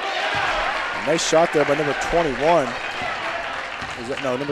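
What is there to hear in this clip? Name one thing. Spectators shout and whoop excitedly.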